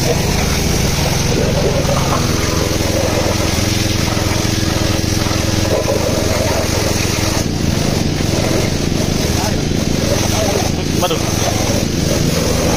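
A pressure washer pump hums steadily.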